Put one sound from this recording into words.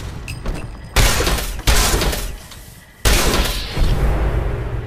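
Heavy gunshots boom one after another, each ringing out and fading slowly.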